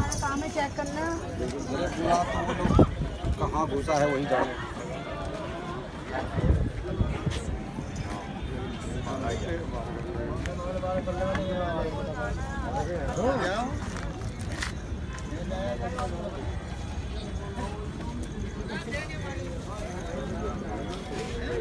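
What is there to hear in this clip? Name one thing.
Several men talk outdoors at close range, their voices overlapping.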